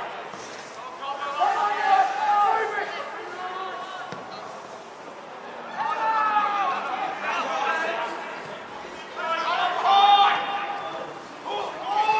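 Young players and men shout loudly across an open field outdoors.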